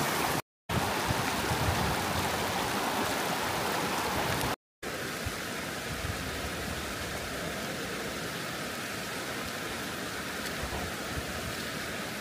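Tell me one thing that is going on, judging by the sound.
Footsteps crunch on loose rocks.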